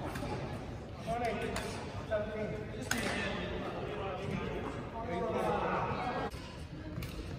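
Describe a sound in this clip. Men talk casually across a court.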